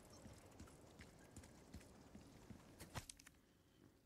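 Footsteps crunch softly on rubble.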